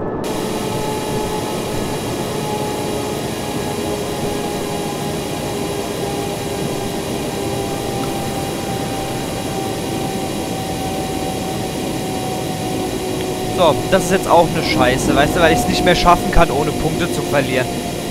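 A train engine hums steadily.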